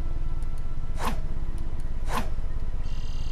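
A sword swishes through the air twice.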